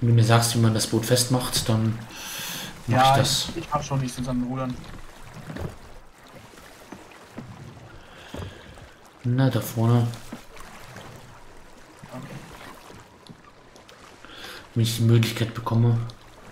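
Waves of the sea wash and splash gently.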